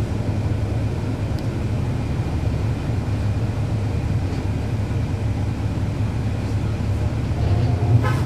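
A bus engine idles with a low, steady rumble close by.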